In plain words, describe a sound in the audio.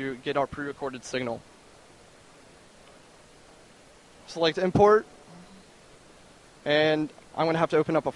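A young man speaks into a handheld microphone with pauses, heard close through a loudspeaker.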